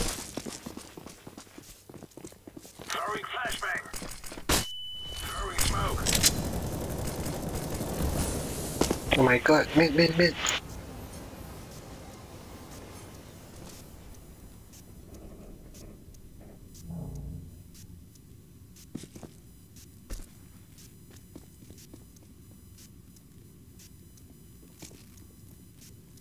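Footsteps tap on hard floors.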